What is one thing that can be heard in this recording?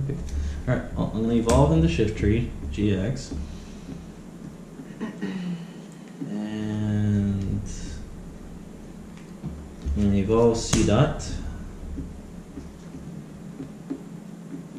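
Playing cards shuffle and flick in a man's hands.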